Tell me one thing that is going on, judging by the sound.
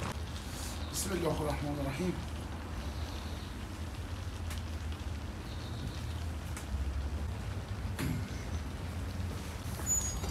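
A large sheet of dough flaps and rustles as it is laid down.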